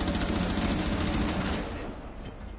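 Gunshots crack in a rapid burst.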